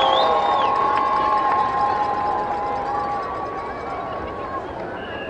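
A marching band plays sustained brass chords outdoors.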